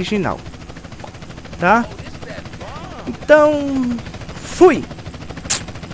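A young man speaks in short, animated bursts into a microphone.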